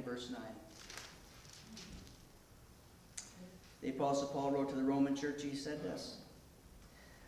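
A middle-aged man speaks calmly into a microphone in a room with some echo.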